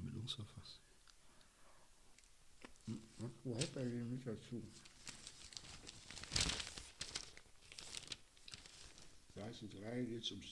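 A man speaks close to a microphone, in a calm voice.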